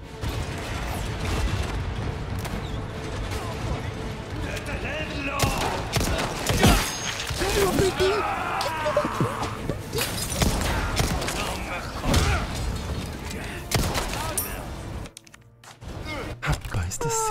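A young man talks and exclaims with animation into a close microphone.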